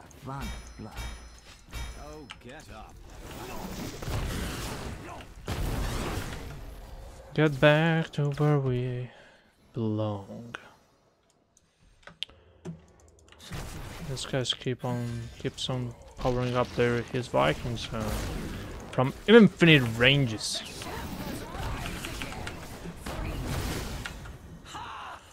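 Fantasy battle sound effects clash and crackle.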